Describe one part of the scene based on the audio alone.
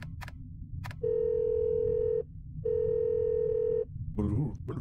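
A phone ring tone sounds in long steady tones.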